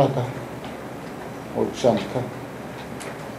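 An elderly man speaks a few short words into a microphone.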